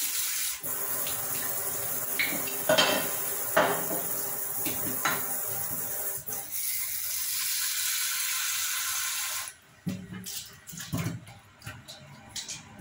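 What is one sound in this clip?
A dish knocks and scrapes against a metal sink as it is scrubbed.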